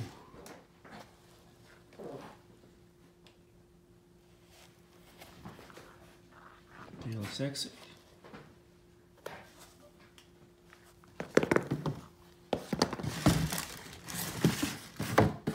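A sneaker rubs and knocks softly as hands turn it over.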